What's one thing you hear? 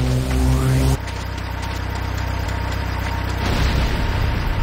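A heavy vehicle's engine rumbles nearby.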